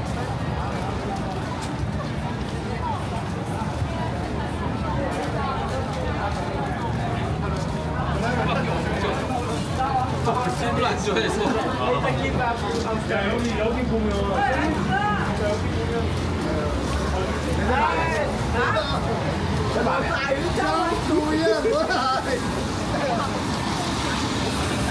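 Rain patters steadily on umbrellas and wet pavement outdoors.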